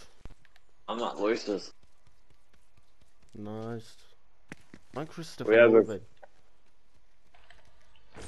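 Footsteps patter quickly on a stone path.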